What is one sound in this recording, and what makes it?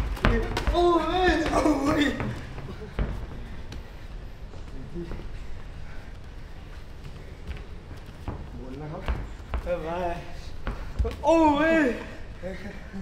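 A young man talks with animation nearby.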